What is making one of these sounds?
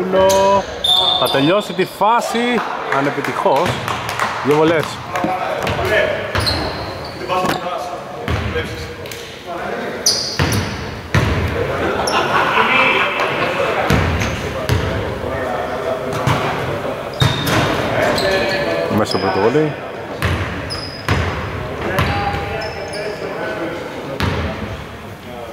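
Basketballs bounce on a hard floor in a large echoing hall.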